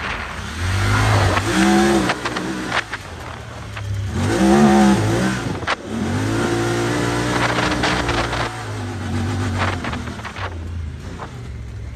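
Tyres churn through loose sand.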